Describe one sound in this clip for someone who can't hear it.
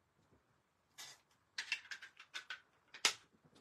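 A plastic block clicks and taps against a hard surface.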